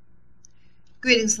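An older woman begins speaking calmly into a close microphone.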